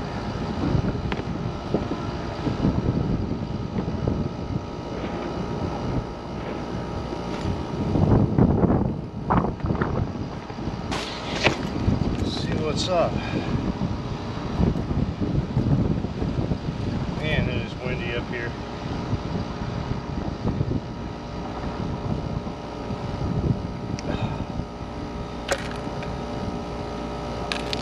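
A rooftop cooling unit hums steadily.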